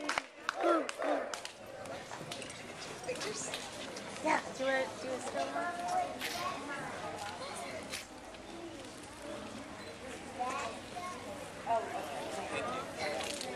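Adults and children chatter nearby.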